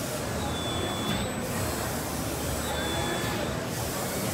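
An all-electric CNC tube bender whirs.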